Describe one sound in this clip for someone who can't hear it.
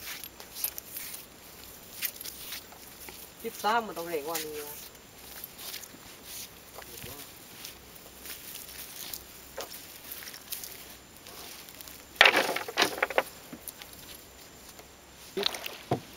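A fishing net rustles as it is handled.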